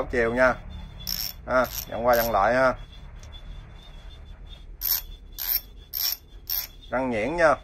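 A ratchet wrench clicks as it is turned.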